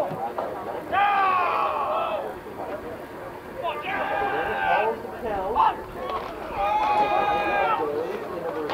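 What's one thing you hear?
A young man shouts loudly across an open field.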